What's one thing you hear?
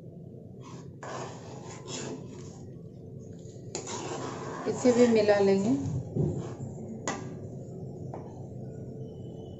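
A metal spoon scrapes and stirs through a thick sauce in a metal pan.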